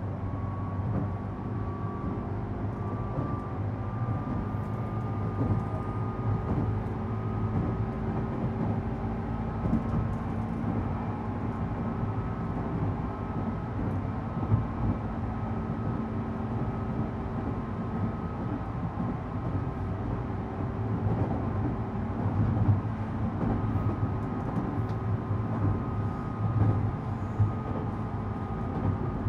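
A train car rumbles and hums steadily while moving along the tracks.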